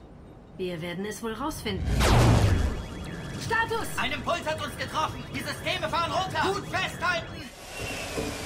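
A woman speaks urgently nearby.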